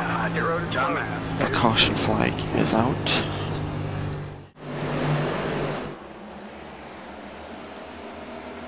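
Race car engines roar at high speed.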